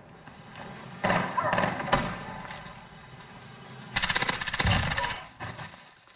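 A rifle fires loud rapid bursts.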